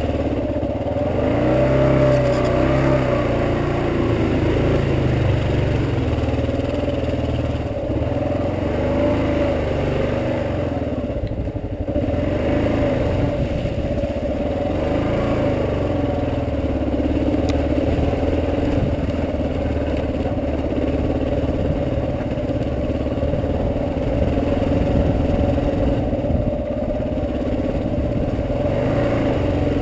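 A motorcycle engine hums and revs, rising and falling in pitch.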